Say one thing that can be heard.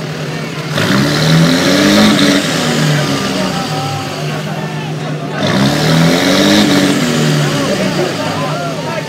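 A truck engine revs loudly up and down close by.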